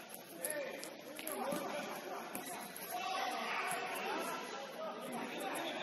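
Young players shout and call out across a large echoing hall.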